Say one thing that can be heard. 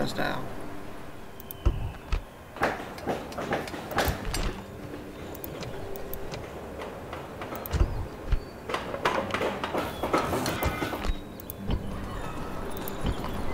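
Soft interface clicks sound as menus open and close.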